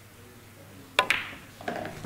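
A cue sharply strikes a billiard ball.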